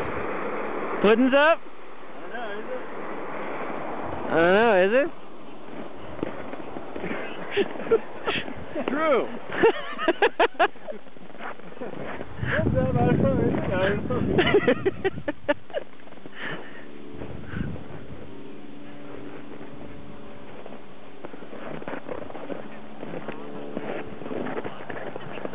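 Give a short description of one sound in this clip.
Wind blows across an open snowfield outdoors.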